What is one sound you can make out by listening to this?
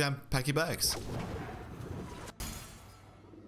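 Game sound effects chime and whoosh.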